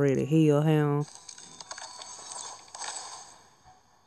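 A crystal shatters with a bright, glassy burst.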